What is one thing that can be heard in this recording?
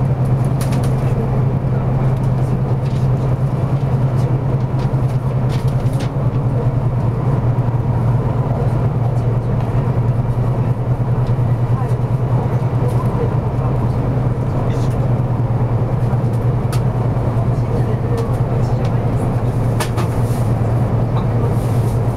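A vehicle engine hums steadily and low.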